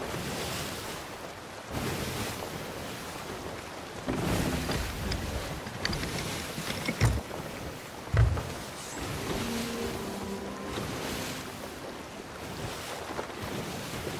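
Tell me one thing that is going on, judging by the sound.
Wind rushes steadily.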